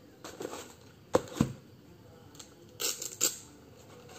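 A shoe thumps down into a cardboard box.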